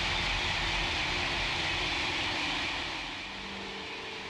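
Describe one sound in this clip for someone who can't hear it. A high-speed train rushes past with a steady roar.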